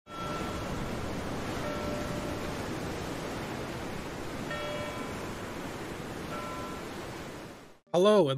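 Water ripples and laps on open sea.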